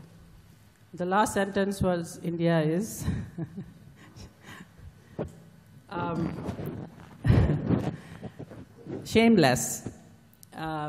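A woman speaks calmly into a microphone, pausing between phrases.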